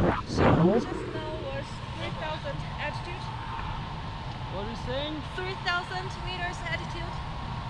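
A woman talks excitedly up close.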